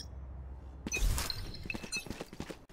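A game character's ability makes a short rustling whoosh.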